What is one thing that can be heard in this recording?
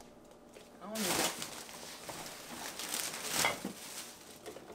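Plastic rustles as a bag is handled.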